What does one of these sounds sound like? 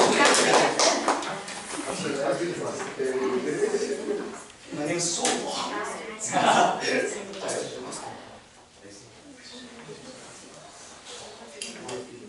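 A group of young people sings together in a large room.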